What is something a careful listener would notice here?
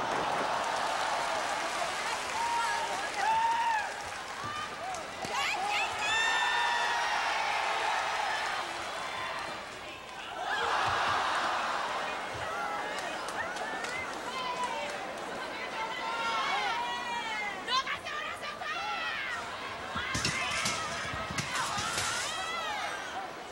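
A crowd shouts and cheers in a large indoor arena.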